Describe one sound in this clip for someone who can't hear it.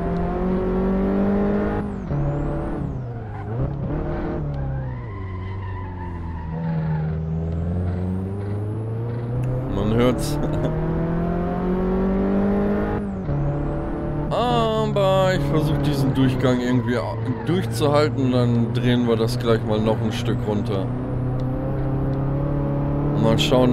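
A small car engine drones and revs up and down as the car races.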